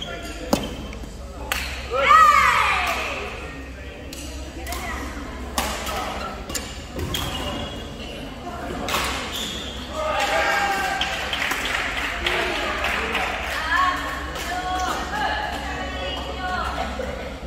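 Badminton rackets smack a shuttlecock back and forth in sharp pops.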